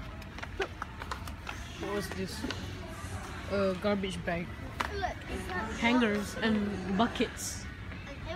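A child talks close by.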